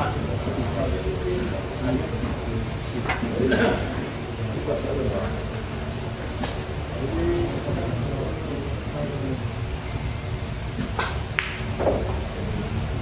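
A crowd of men and women murmur and chat nearby.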